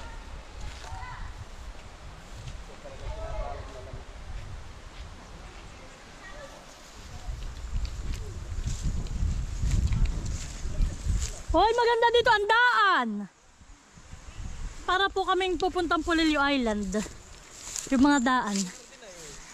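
Wind gusts outdoors, rustling palm leaves.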